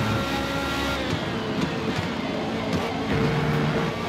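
A racing car engine drops in pitch as the car slows.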